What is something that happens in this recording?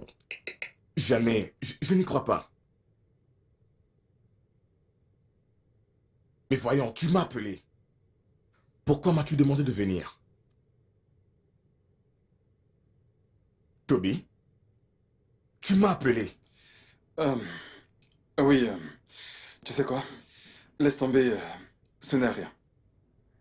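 Another man answers in a low, stern voice close by.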